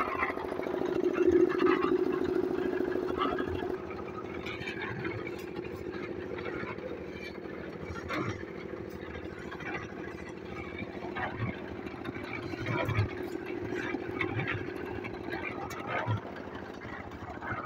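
A diesel engine runs with a steady chugging throb.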